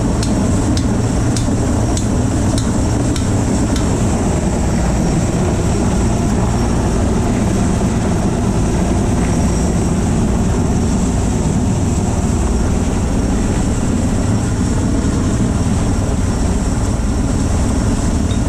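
Strong wind roars steadily across a high, open place.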